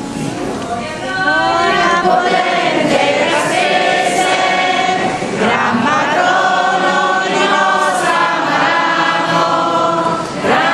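A group of men sing a slow chant together, echoing.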